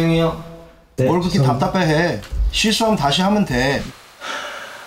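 A man asks a question calmly.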